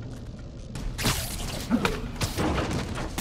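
A web line shoots out with a whoosh.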